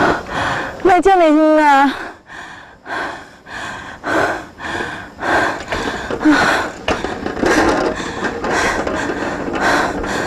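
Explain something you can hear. A middle-aged woman talks to herself.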